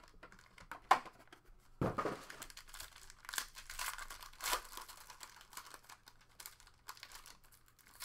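A foil pack crinkles and tears as it is opened.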